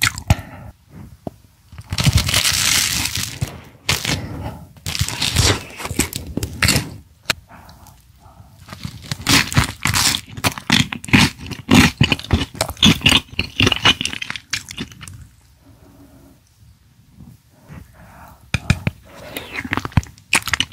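Thick sauce squelches wetly as food is lifted.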